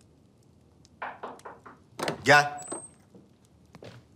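A man speaks briefly in a calm voice, close by.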